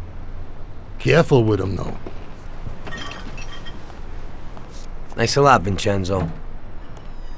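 A middle-aged man speaks with a gruff voice, close by.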